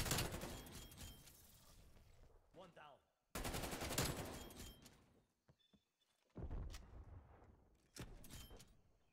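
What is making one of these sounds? Bursts of rapid gunfire crack loudly, with echoing tails.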